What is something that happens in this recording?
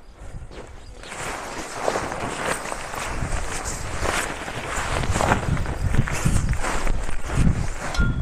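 A tent's fabric rustles and flaps as a man handles it.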